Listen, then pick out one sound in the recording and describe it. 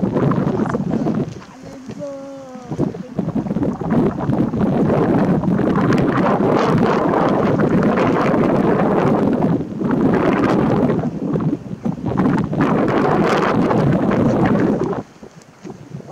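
Wind gusts across an open clifftop.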